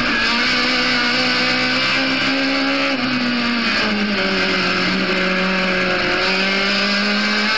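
Wind rushes past the car at speed.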